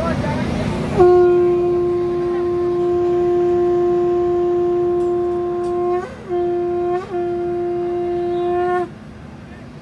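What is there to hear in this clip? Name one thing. A man sings long, held notes through a microphone and loudspeaker.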